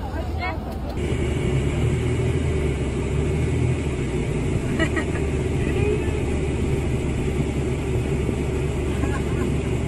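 A vehicle engine hums low and steadily.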